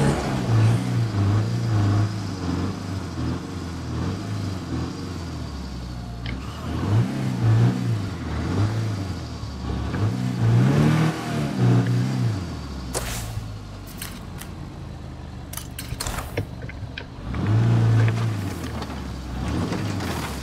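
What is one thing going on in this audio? A car engine hums and revs as a vehicle drives along a road.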